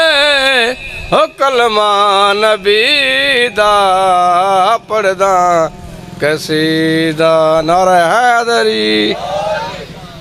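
A man sings loudly through a microphone, with a strong, wavering voice.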